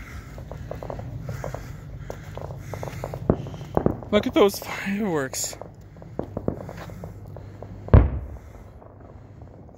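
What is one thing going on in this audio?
Fireworks crackle and pop in the distance.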